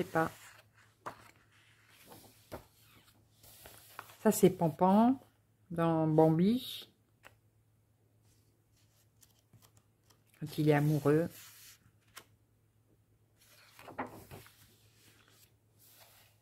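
A paper page turns with a rustle.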